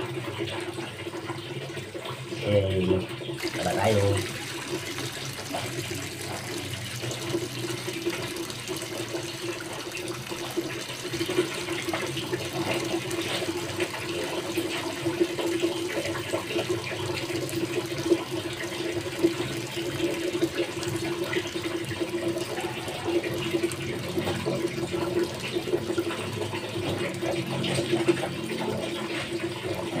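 Wet clothes are scrubbed and swished in water.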